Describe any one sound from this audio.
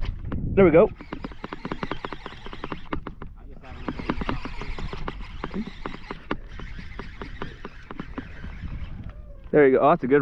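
A fishing reel clicks as line winds in.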